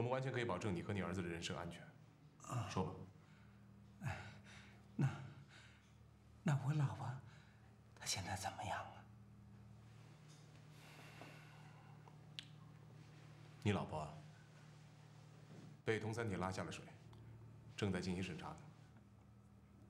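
A man speaks calmly and questions someone close by.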